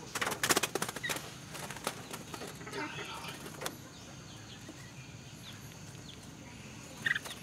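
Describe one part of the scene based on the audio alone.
Small birds chirp briefly.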